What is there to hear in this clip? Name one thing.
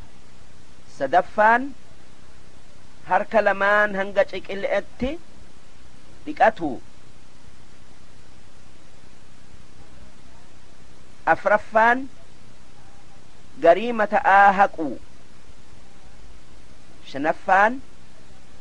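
An elderly man speaks slowly and solemnly into a microphone, in short phrases with long pauses.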